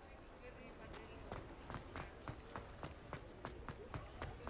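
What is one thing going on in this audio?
Footsteps run on cobblestones.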